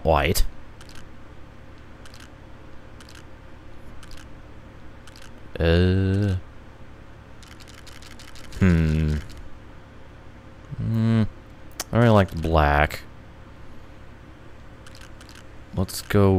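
Short menu clicks tick now and then as options change.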